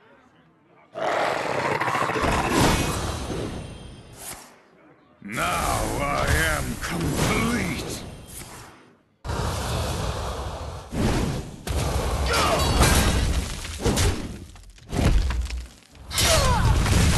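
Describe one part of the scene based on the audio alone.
Digital game sound effects crash and chime as pieces attack one another.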